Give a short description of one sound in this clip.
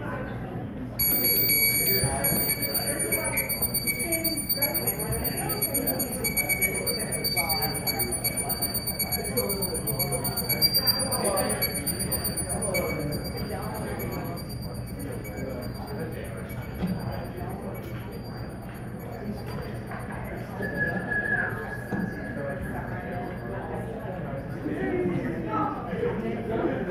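A keyboard synthesizer plays high, steady tones.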